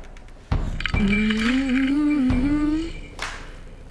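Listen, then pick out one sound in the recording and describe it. A young woman speaks nearby in a strained voice.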